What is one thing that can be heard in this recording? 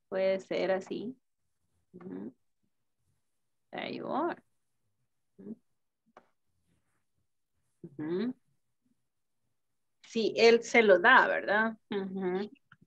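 A woman speaks slowly in short phrases over an online call.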